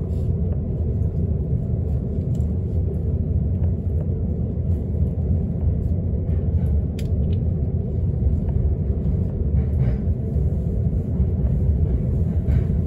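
A train rumbles steadily and low.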